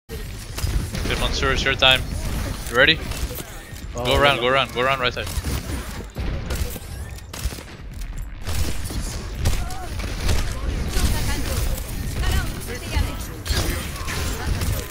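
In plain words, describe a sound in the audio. Energy blasts and impacts thud and boom.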